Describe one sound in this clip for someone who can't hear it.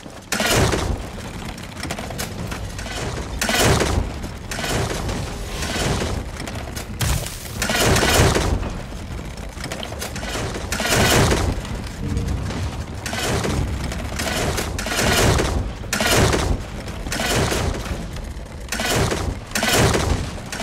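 A siege ballista fires again and again, each shot a loud whooshing burst.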